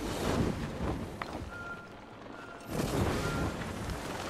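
Leaves rustle as something crashes through a leafy tree.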